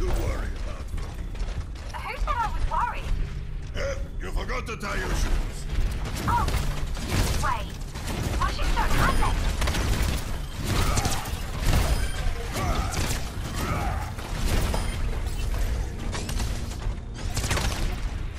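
Energy weapons fire in rapid bursts with crackling zaps.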